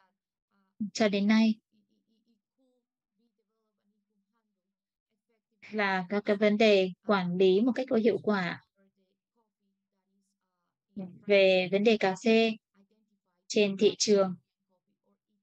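A woman speaks calmly through an online call, with long pauses.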